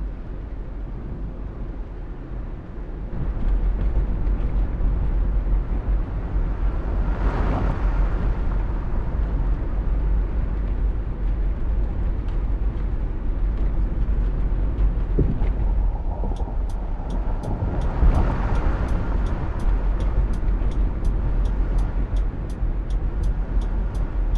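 A bus engine hums steadily in a low drone.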